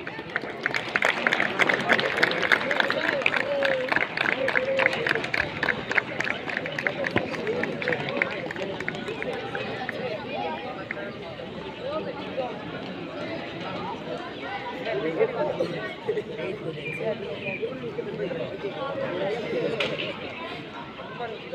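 A group of children chatter and call out nearby.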